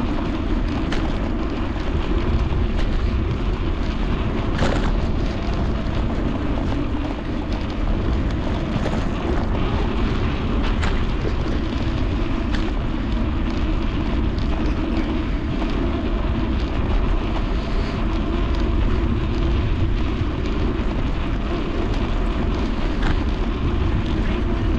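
Wind rumbles loudly across a microphone outdoors.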